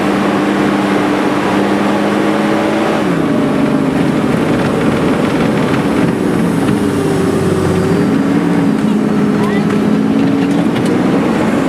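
A heavy vehicle's engine roars loudly, its pitch shifting as gears change.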